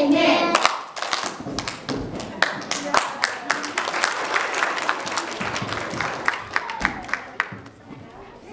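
Children clap their hands.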